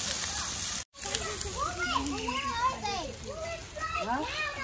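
A young woman talks with animation nearby outdoors.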